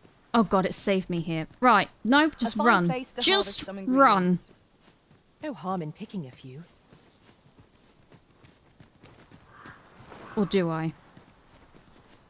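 Footsteps run over grass and earth.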